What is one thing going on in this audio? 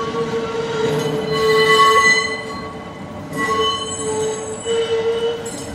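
A tram rolls slowly by with a steady high whine.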